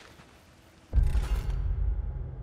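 A deep, loud rumbling tone swells suddenly.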